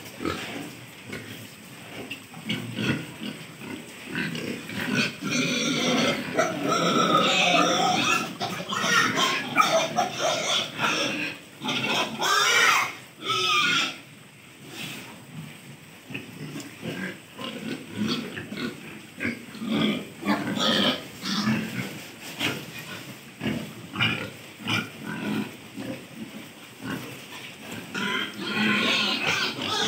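Pigs grunt and squeal close by.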